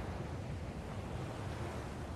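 Small waves wash onto a beach.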